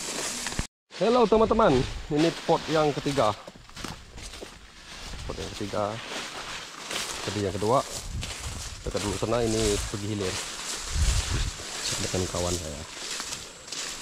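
A man speaks close by in a relaxed, chatty way.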